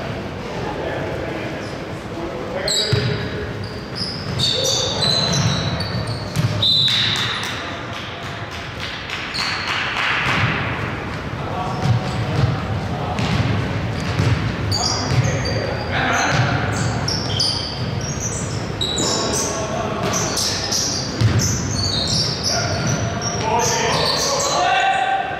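A basketball bounces with dull thumps.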